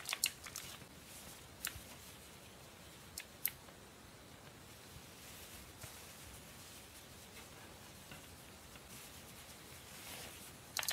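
Cloth rustles softly as hands fold it.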